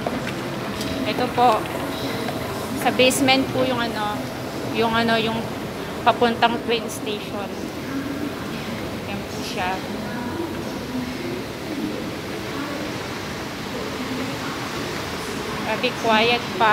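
A woman speaks close by, casually.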